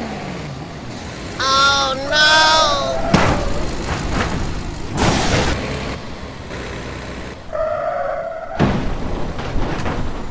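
A car engine hums as it drives.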